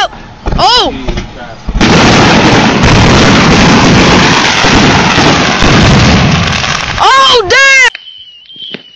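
Firework whistles shriek, rising and falling.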